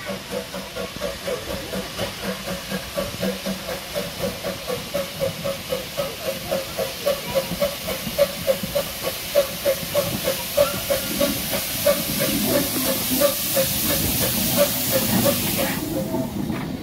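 A steam locomotive chuffs in rapid, even beats as it approaches.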